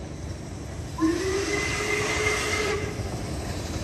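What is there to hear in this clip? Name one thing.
A steam locomotive's whistle sounds in the distance.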